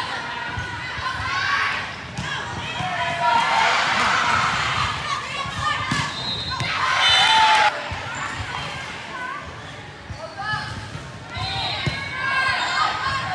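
Young women shout and cheer loudly in a large echoing gym.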